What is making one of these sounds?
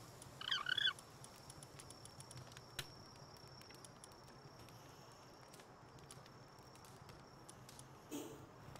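Soft interface clicks tick quickly.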